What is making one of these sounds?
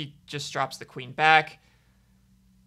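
A young man speaks briefly and with animation into a microphone.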